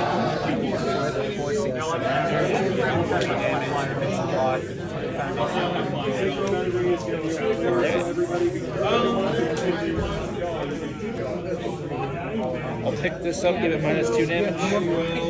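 Playing cards slide and tap softly on a cloth mat.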